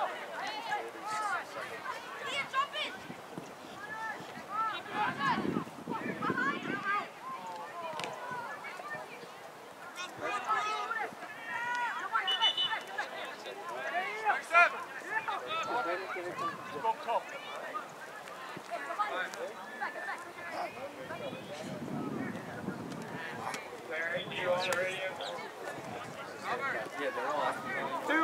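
Young players shout and call to each other across an open outdoor field.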